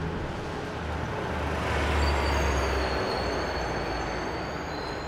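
A bus drives past close by with a rising and fading roar.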